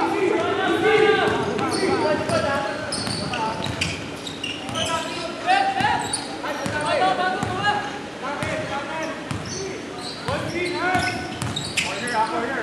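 Men shout and call out to each other nearby in a large echoing hall.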